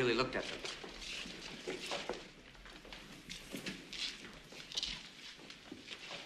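Footsteps shuffle on a hard floor as a group walks.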